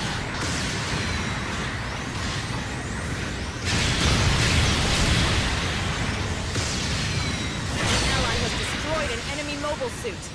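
A robot's thrusters roar steadily.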